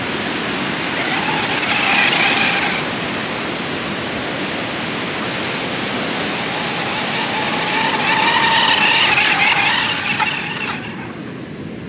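A toy car's electric motor whines high as it races past.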